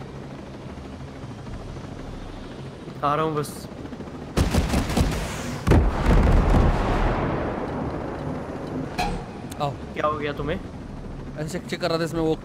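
A helicopter's rotor whirs steadily overhead.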